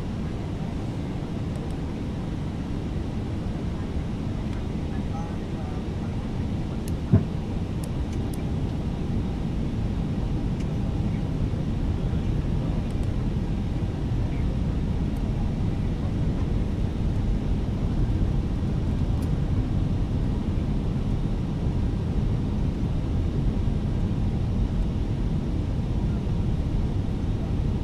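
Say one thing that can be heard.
Jet engines hum steadily with a low rushing rumble.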